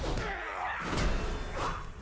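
A magic spell shimmers with a bright whoosh.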